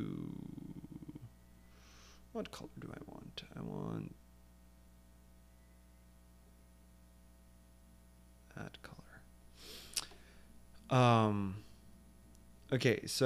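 A man speaks casually and close to a microphone, in short bursts with pauses.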